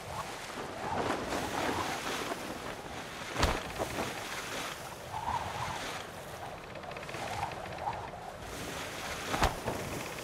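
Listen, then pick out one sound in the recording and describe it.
Water splashes against the hull of a sailboat.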